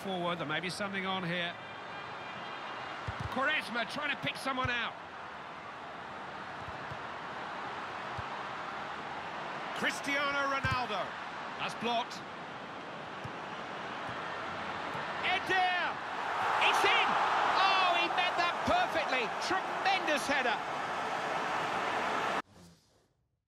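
A large stadium crowd roars and cheers, swelling loudly toward the end.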